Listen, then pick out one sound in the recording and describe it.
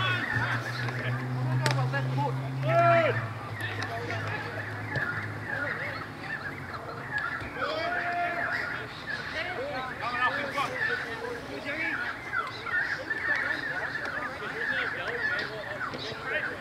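Young men shout and call out to each other at a distance outdoors.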